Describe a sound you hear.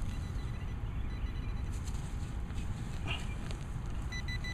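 A small trowel scrapes and digs into loose soil.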